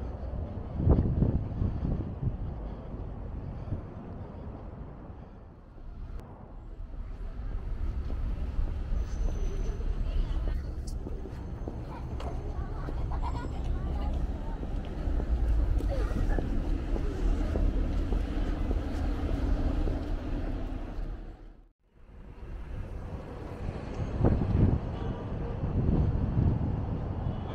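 Traffic rumbles steadily on a nearby road.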